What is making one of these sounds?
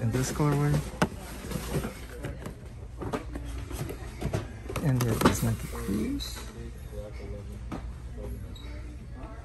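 A cardboard shoebox is handled, with soft rustles and bumps.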